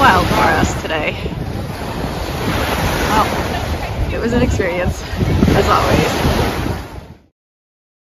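Adults call out to each other on a beach.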